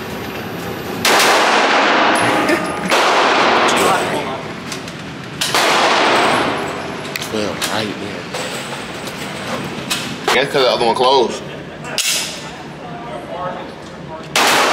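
Gunshots boom one after another, ringing in an echoing indoor range.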